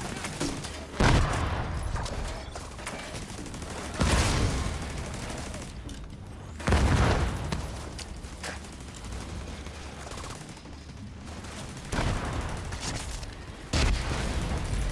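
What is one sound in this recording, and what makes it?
Gunfire and heavy blasts boom repeatedly, with short quiet gaps between them.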